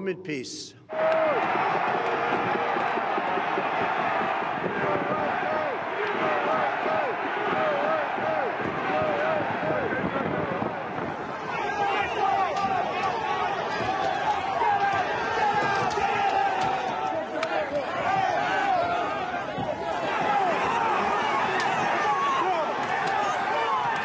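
A large crowd shouts and chants loudly outdoors.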